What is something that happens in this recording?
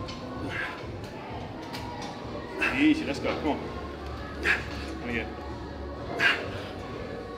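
Weight plates clank on a barbell.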